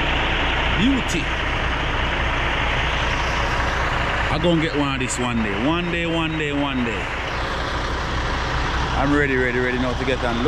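A truck engine rumbles steadily nearby.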